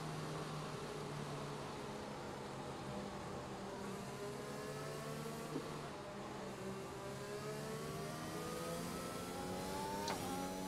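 A racing car engine hums steadily and rises in pitch as the car speeds up.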